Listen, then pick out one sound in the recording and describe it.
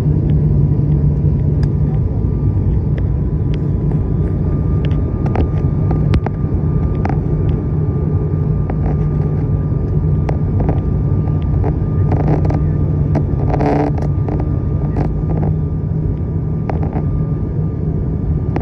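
A propeller plane's engines drone steadily and loudly.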